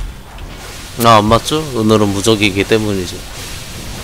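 A young man speaks with animation into a nearby microphone.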